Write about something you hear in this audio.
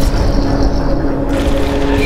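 A fire roars and crackles in the distance.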